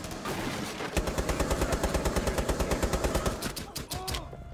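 A rifle fires a rapid burst of shots at close range.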